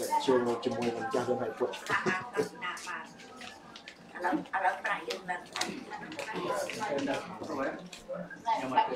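A group of men and women talk nearby.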